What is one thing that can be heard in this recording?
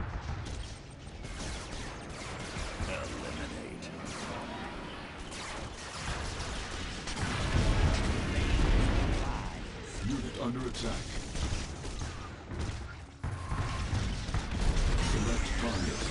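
Laser beams zap and buzz.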